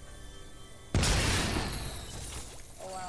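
A toy llama piñata bursts open with a loud whooshing crash, and the whoosh slowly fades.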